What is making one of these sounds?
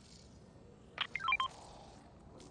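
A game notification chimes with a short run of bright tones.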